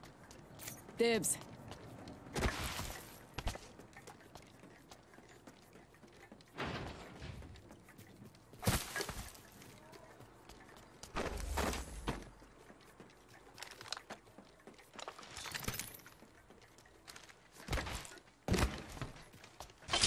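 Footsteps patter quickly as a game character runs.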